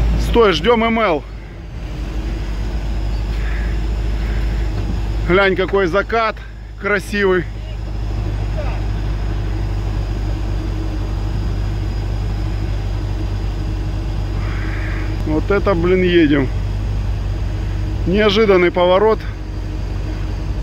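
A car engine rumbles steadily.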